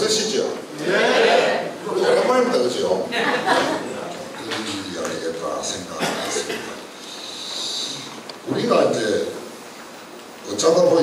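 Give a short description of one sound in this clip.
An elderly man speaks through a microphone over loudspeakers in an echoing hall.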